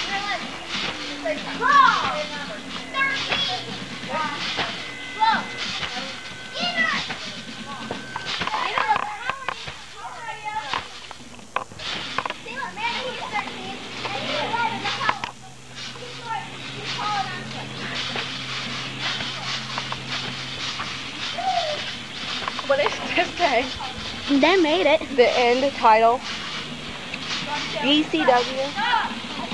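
Boys shout and laugh nearby outdoors.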